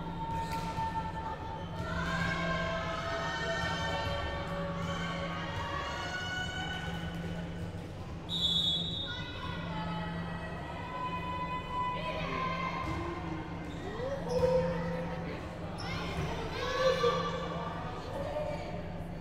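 A volleyball is struck and thuds in an echoing hall.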